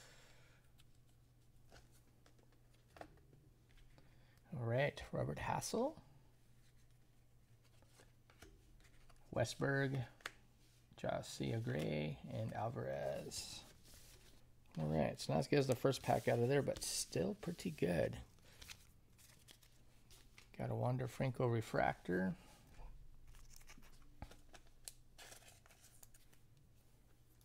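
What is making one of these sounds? Trading cards rustle and click as they are handled.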